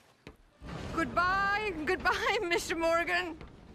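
A woman calls out a cheerful farewell in a high, sing-song voice.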